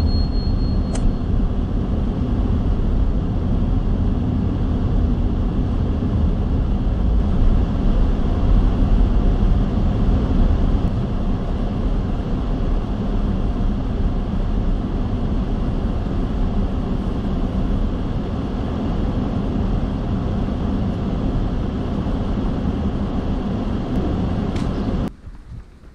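A car's engine and tyres rumble steadily from inside the car as it drives.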